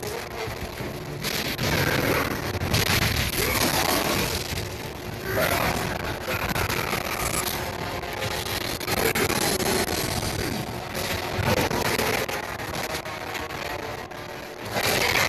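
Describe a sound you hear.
A huge beast roars and grunts.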